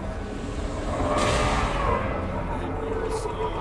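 A ship explodes with a loud, rumbling blast.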